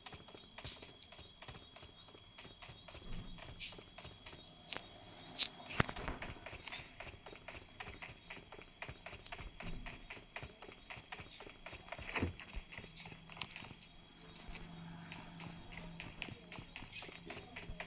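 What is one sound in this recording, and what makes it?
A game character crawls over stone with soft, quick shuffling steps.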